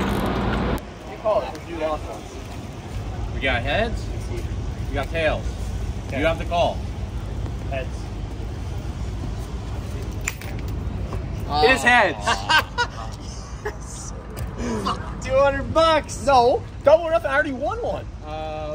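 Several young men talk and laugh close by outdoors.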